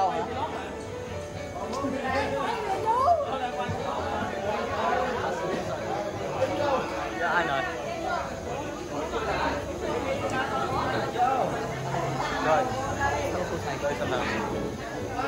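A crowd of men and women chatter loudly and cheerfully nearby.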